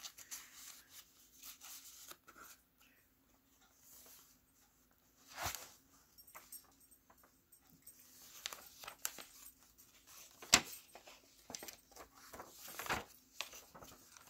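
Paper pages rustle and flip as they are turned.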